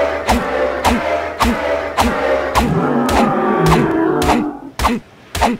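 A large creature groans in pain.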